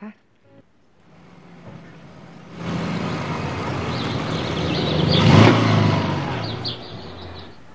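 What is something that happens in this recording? A motorcycle engine rumbles as it rides past.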